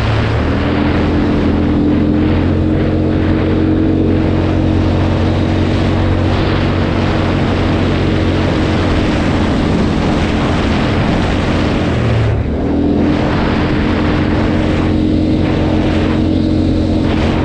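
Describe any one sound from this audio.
A quad bike engine drones steadily up close, briefly dropping in pitch as the rider shifts.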